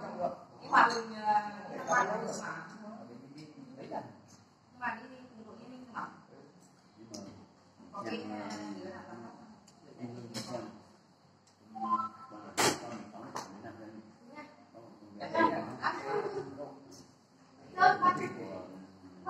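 Men and women talk casually nearby.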